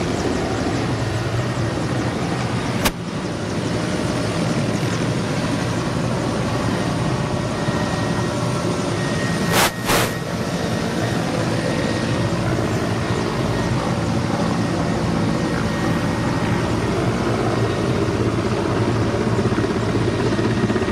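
Helicopter rotors thump and roar steadily nearby.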